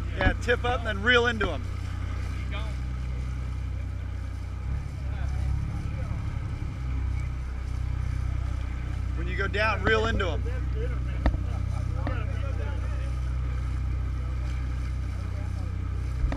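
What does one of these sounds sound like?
A boat engine rumbles steadily.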